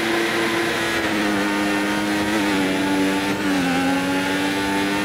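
A racing car engine whines loudly and shifts up through the gears as the car speeds up.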